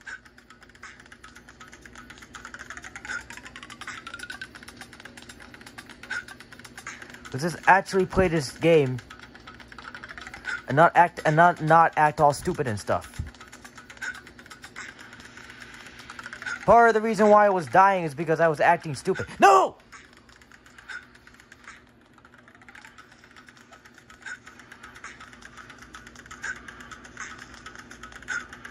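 Game music and effects play from a small phone speaker.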